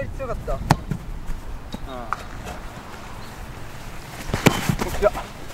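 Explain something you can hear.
A foot kicks a soccer ball with a sharp thump.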